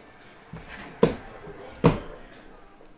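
A cardboard box taps on a table.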